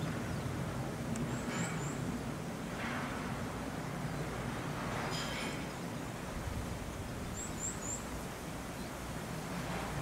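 Twigs and leaves rustle as a large animal pulls at a bush.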